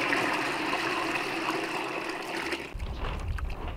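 Liquid pours and splashes into a bucket.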